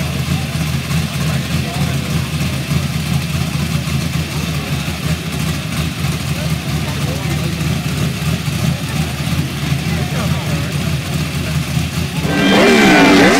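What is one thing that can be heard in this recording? A car engine idles with a deep, throaty rumble.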